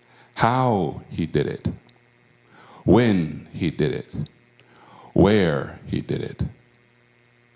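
A man speaks with animation through a microphone in a large room.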